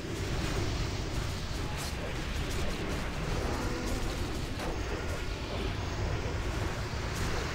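Magic spells crackle and whoosh during a fierce battle.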